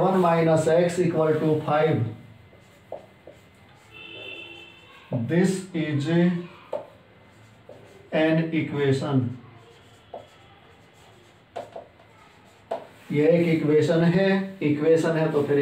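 A man speaks calmly in short phrases, close by.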